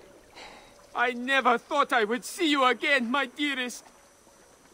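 A young man speaks warmly, close by.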